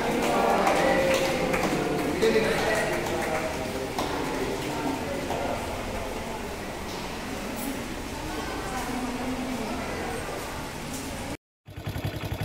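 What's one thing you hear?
A group of people claps.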